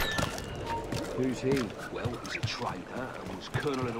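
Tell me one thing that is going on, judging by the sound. Footsteps thud on a wooden roof.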